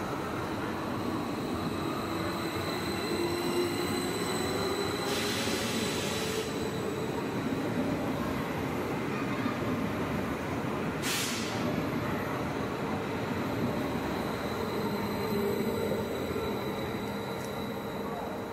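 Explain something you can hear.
A train's motor whines with a rising and falling pitch.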